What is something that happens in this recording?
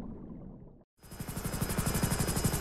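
Propeller engines drone loudly with a fast rhythmic beat.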